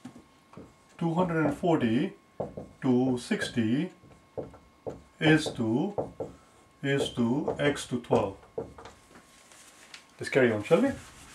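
A man speaks calmly in a steady explaining voice, close by.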